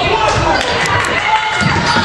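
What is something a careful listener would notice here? A basketball bounces on a hardwood floor.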